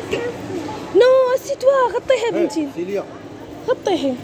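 A young girl talks in a high, lively voice close by.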